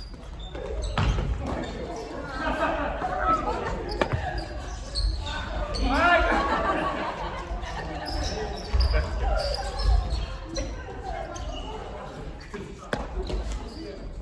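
Adult men and women talk and call out with animation.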